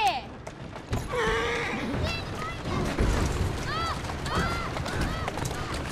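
Carriage wheels rattle over cobblestones.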